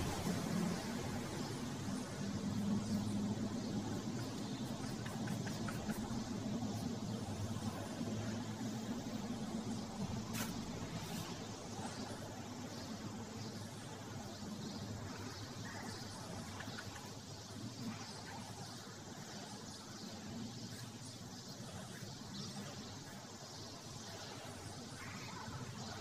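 A pencil sketches and scratches on paper.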